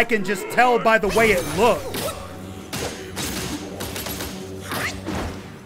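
Sword blows clash and thud in a game fight.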